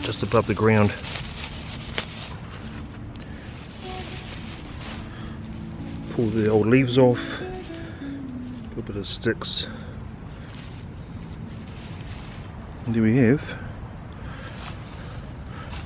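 Leaves rustle as a hand pulls at low plants.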